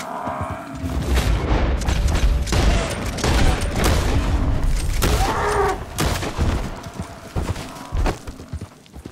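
Rifle shots crack outdoors.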